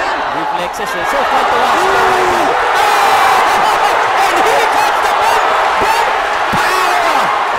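A large crowd cheers and shouts loudly throughout.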